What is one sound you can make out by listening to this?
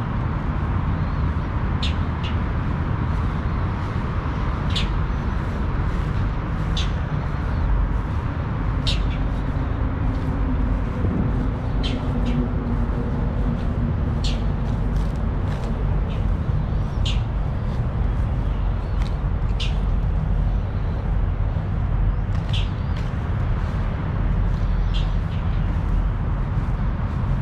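Wind blows steadily outdoors, rumbling low.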